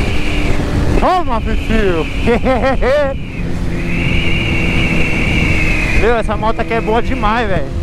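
A motorcycle engine revs up and down in quick bursts.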